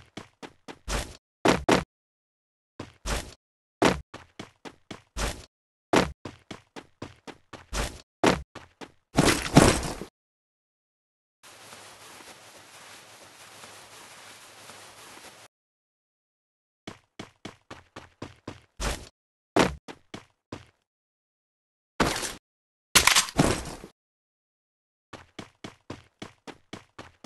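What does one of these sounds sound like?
Quick footsteps thud in a steady running rhythm.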